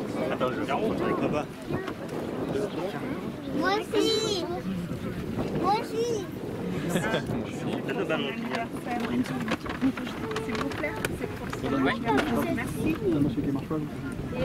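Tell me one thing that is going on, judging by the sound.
A crowd of children and adults chatter close by, outdoors.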